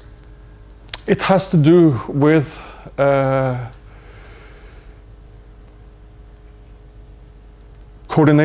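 A man speaks through a microphone in a large echoing hall, in short phrases.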